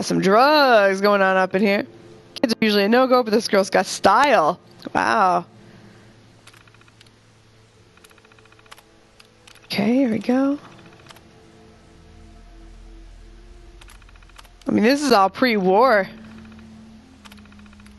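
A computer terminal clicks and ticks as text types out.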